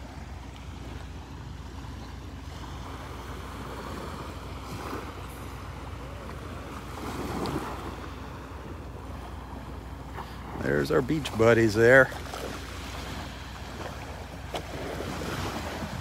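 Small waves lap gently on a shore.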